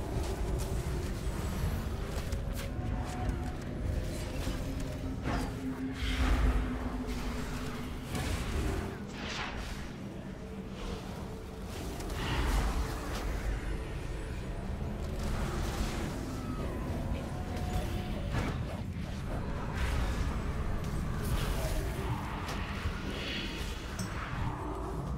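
Spell effects crackle and burst in a battle.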